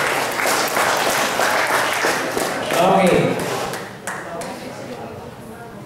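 A man reads out through a microphone and loudspeakers in a room with some echo.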